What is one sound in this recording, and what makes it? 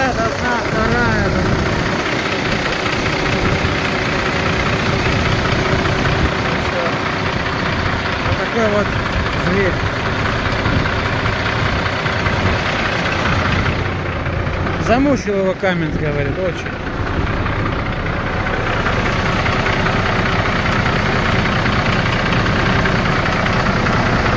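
A diesel truck engine idles with a loud, steady rumble close by.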